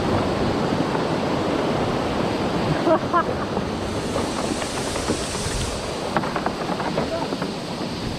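Wind rushes past loudly outdoors.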